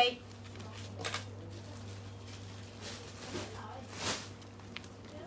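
A shirt's fabric rustles as it is handled and shaken out.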